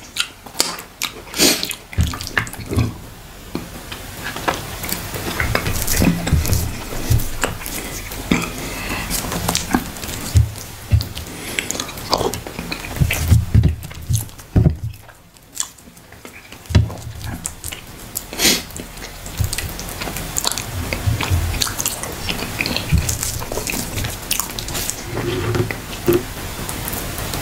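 A man licks and sucks his fingers.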